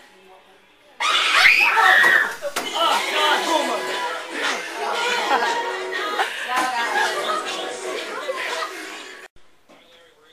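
A group of children laugh and shout loudly together.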